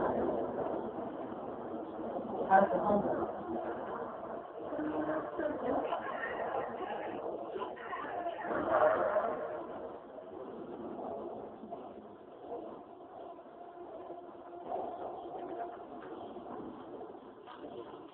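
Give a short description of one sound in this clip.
A television plays sound.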